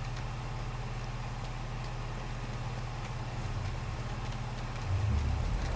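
Footsteps patter quickly over stone and grass.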